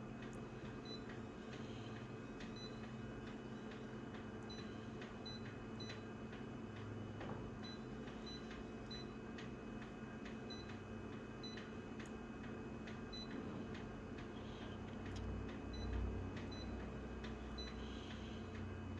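An office machine's touch panel beeps with short high chirps as buttons are pressed.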